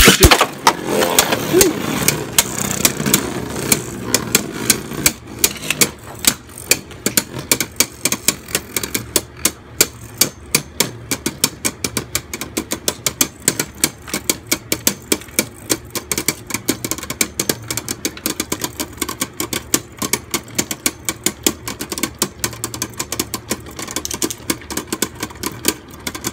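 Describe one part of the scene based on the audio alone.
Spinning tops whir and scrape across a plastic dish.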